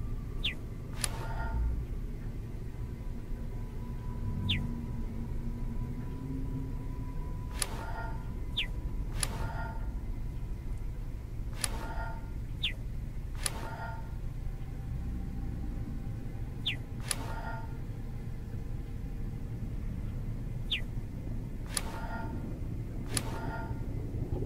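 A bright chime rings out again and again, in short bursts.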